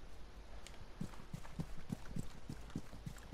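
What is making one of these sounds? Quick footsteps thud on grass.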